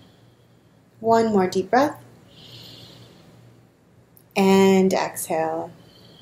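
A young woman sings short, drawn-out phrases close to the microphone.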